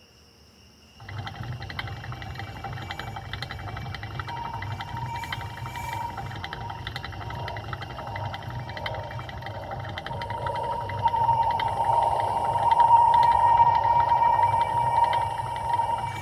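A hamster's exercise wheel spins with a steady, fast rattle.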